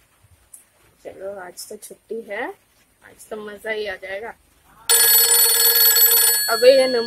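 A young woman speaks expressively, close up.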